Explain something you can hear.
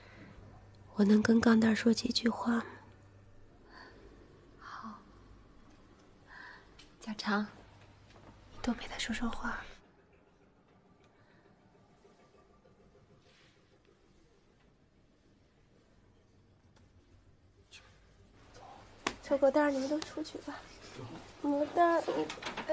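A middle-aged woman speaks softly and pleadingly close by.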